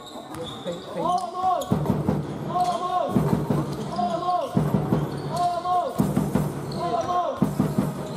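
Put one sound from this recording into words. A crowd chants rhythmically in an echoing hall.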